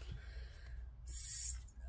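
A hand brushes across soft cloth.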